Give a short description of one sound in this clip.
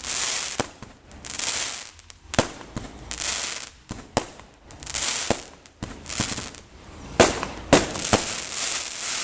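Fireworks crackle and hiss as they burst.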